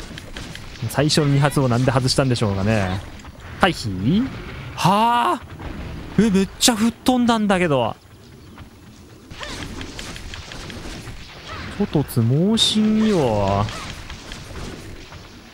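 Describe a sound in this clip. A blade slashes and thuds into a beast's hide.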